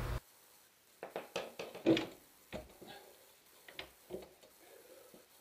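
Metal parts clink and knock as a hand works on a wheel hub.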